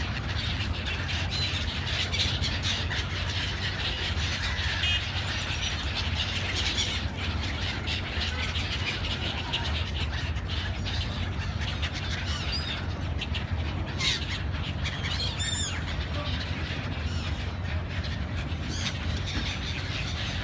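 Many gulls screech and call overhead.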